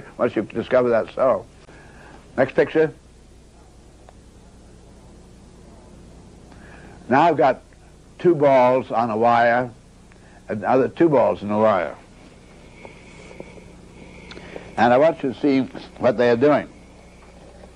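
An elderly man speaks calmly and thoughtfully in bursts, close to a microphone.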